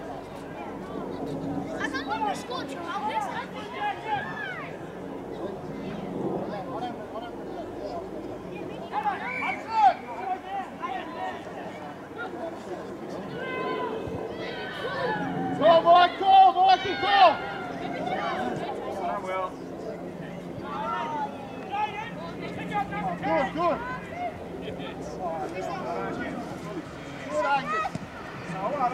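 Young players and spectators shout and call out across an open field.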